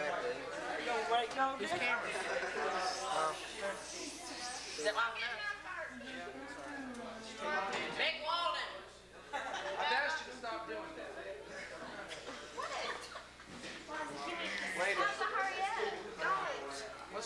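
Several young people talk over one another nearby.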